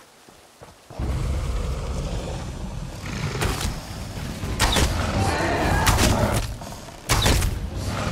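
Arrows are loosed from a bow with sharp snaps.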